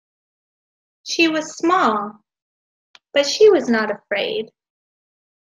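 A young woman reads aloud calmly into a microphone.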